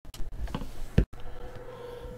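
A metal case latch clicks shut.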